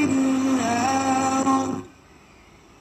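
A radio loudly plays a pitched, tuneful sound through its speaker.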